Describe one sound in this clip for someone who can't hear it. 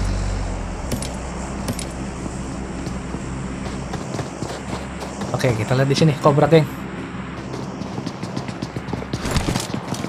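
Footsteps crunch across sand and then thud on wooden floor.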